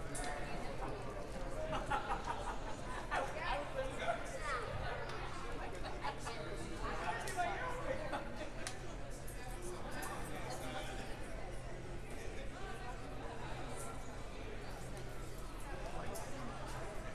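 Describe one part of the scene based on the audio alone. A small crowd of spectators chatters in a large echoing gym.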